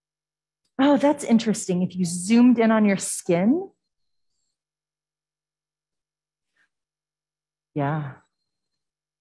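A woman speaks calmly through a microphone in an online call.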